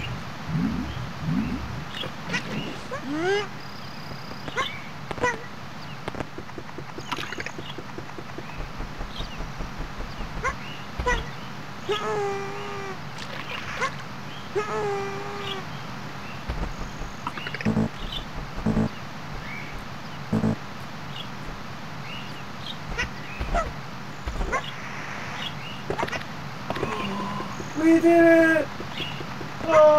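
A game character gives short high chirping cries.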